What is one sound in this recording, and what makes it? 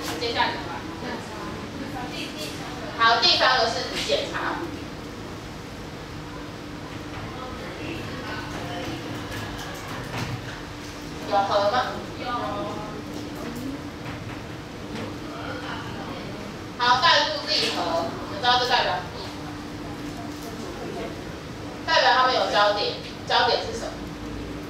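A woman speaks in bursts, explaining with animation.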